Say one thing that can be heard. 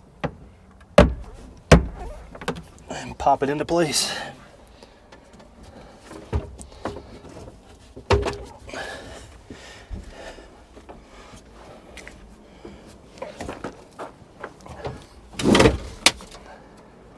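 Hard clicks and knocks sound as hands work on machine parts.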